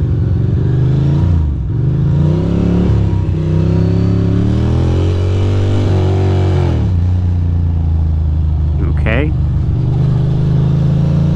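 A motorcycle engine rumbles up close, revving up and down as it rides.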